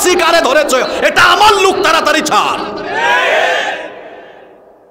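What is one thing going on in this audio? A young man preaches with fervour into a microphone, over loudspeakers in a large echoing space.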